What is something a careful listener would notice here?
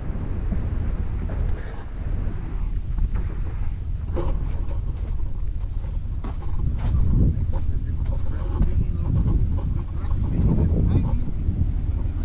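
Footsteps crunch on soft sand.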